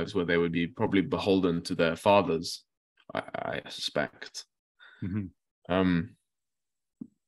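A young man talks calmly over an online call.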